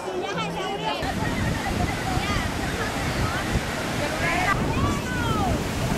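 Waves crash on a beach.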